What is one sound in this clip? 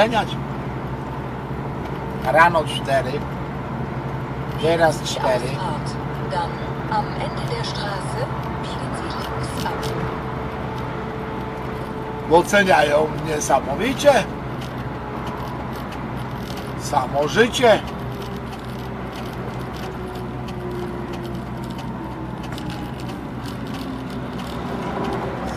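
A car engine hums steadily over a constant road rumble.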